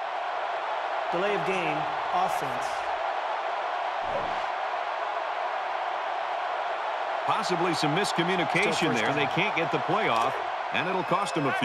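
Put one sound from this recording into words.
A man announces a penalty over a stadium loudspeaker.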